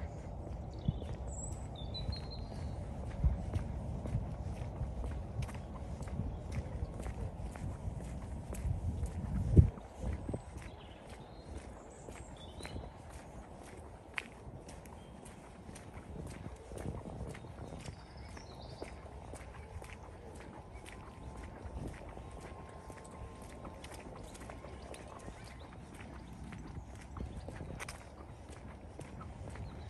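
Footsteps tread steadily along a paved path.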